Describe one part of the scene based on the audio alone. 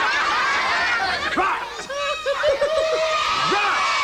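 Several women laugh loudly.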